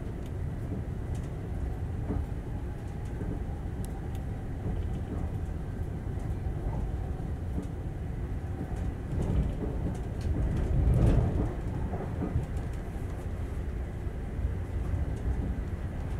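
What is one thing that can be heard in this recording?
Wheels click and clatter over rail joints.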